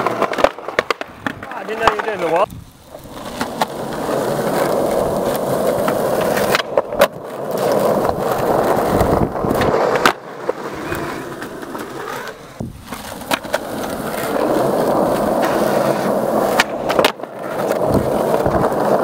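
Skateboard wheels roll and rumble over rough concrete.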